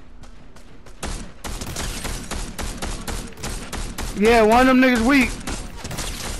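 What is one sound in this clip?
A rifle fires rapid, sharp shots.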